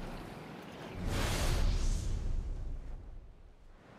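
A magical blast crackles and roars.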